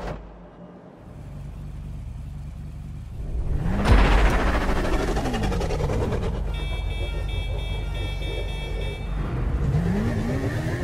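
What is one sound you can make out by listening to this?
Motorcycle engines roar and rev loudly.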